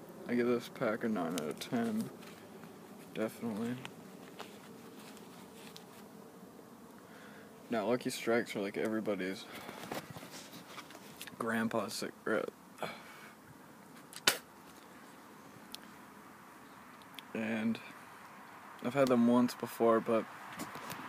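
A young man talks casually and close up, in short bursts with pauses.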